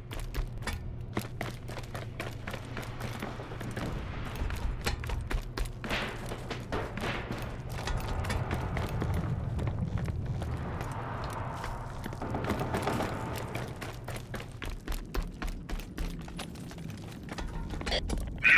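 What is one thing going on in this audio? Rapid gunfire crackles in short bursts.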